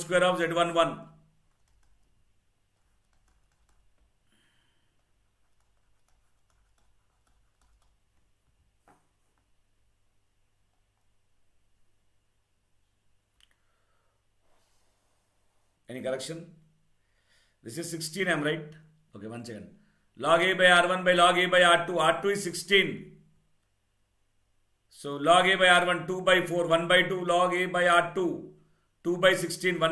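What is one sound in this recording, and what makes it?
A man speaks calmly into a close microphone, pausing between phrases.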